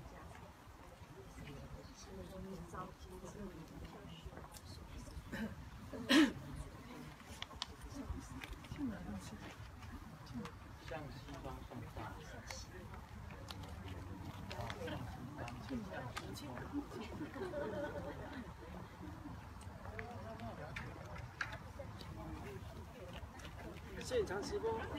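Several men and women talk quietly nearby, outdoors.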